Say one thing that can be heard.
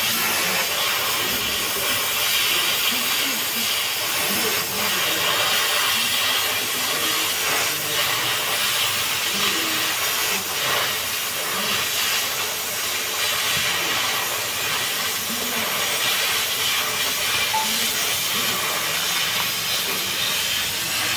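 A cutting torch hisses and roars steadily close by.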